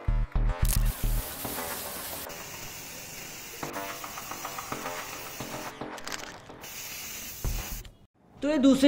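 An aerosol spray can hisses in short bursts.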